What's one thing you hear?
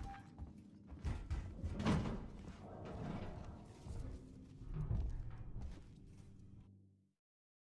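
A man talks into a microphone.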